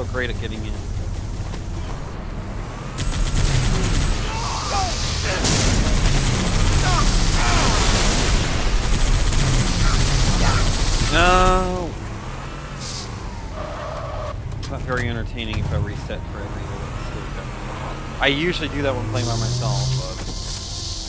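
A vehicle engine roars and rumbles over rough ground.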